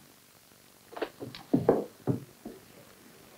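Two men scuffle, with bumps and thuds.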